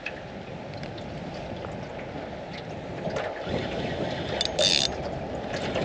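Water laps against the side of a boat outdoors.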